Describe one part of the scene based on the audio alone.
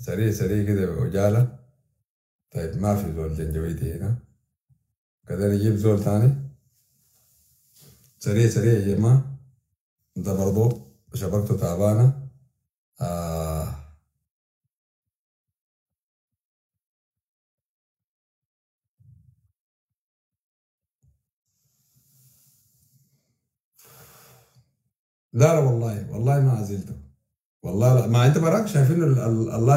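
A man speaks calmly and close to a phone microphone, in short bursts with pauses.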